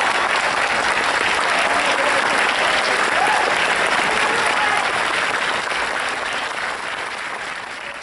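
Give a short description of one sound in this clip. An audience applauds in a large echoing hall, slowly fading.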